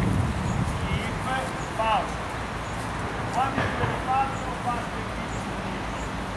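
A man talks to a group outdoors.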